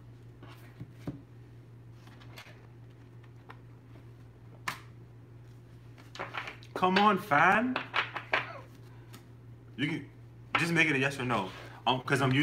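Paper rustles and crinkles as a man unwraps a small package.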